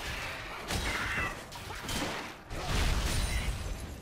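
Magic strikes hit with sharp bursts.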